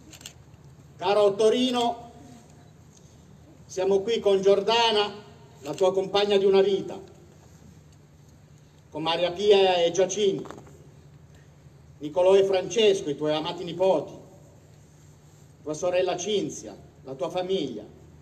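A man speaks slowly and solemnly into a microphone, heard outdoors with pauses between phrases.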